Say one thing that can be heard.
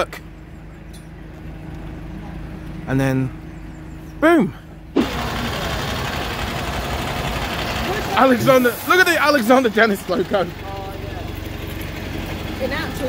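A bus engine idles nearby with a steady low hum.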